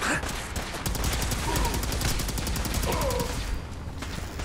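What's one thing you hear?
An energy weapon fires in a rapid buzzing burst.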